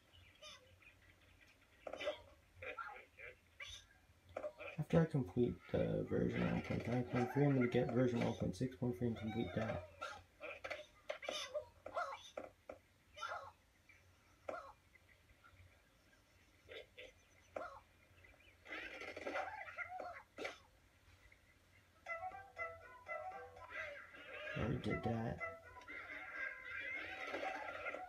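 A tablet game plays short cartoonish sound effects.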